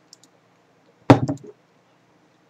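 A glass is set down on a wooden table with a knock.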